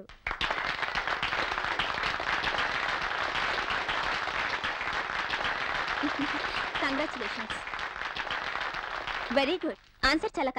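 A class of children claps and cheers loudly.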